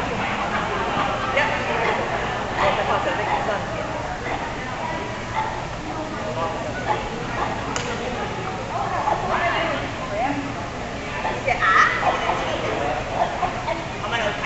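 A woman calls out short commands to a dog, echoing in a large hall.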